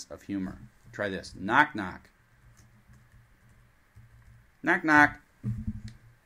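A middle-aged man speaks in short, animated phrases close by.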